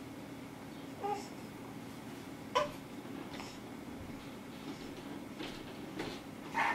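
A baby coos and babbles close by.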